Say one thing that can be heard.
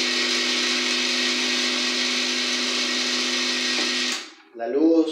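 A coffee machine hums steadily, then stops.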